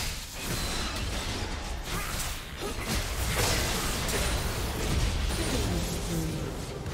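Magic spells blast and crackle amid a clash of fighting.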